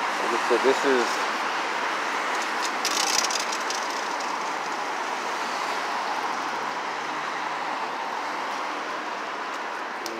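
Cars drive past close by on a street.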